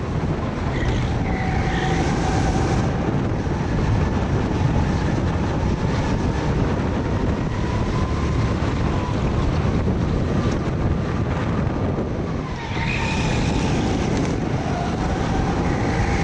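A go-kart engine drones loudly up close.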